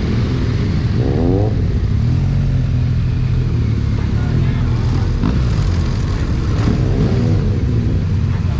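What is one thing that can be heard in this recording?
Other motorcycles rev nearby.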